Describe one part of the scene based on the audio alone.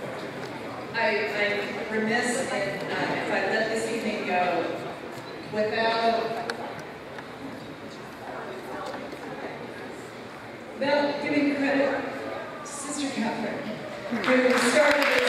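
A woman speaks with animation through a microphone and loudspeakers in a large echoing hall.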